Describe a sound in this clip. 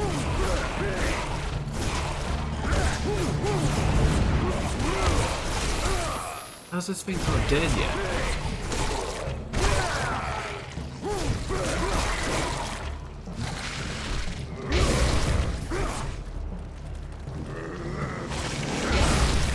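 Magic energy blasts whoosh and crackle.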